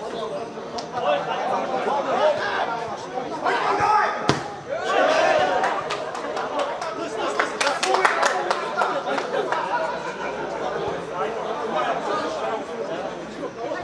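Men shout and call out outdoors.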